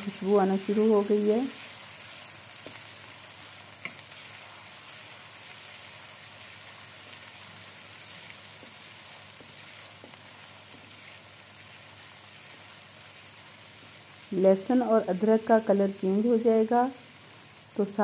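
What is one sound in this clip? Food sizzles gently in a hot pan.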